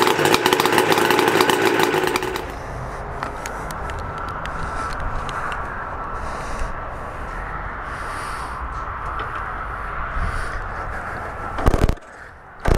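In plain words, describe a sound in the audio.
A motorcycle engine idles with a deep rumble.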